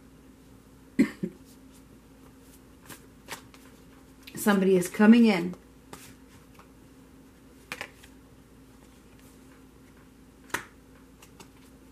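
Playing cards tap and shuffle against each other.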